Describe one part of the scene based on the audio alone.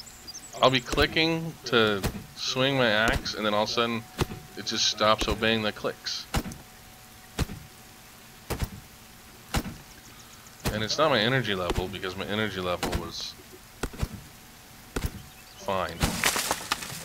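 An axe chops into a tree trunk with sharp, repeated knocks.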